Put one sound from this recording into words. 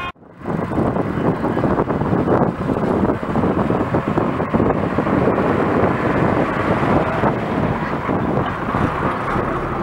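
A bus engine rumbles loudly as the bus passes close by.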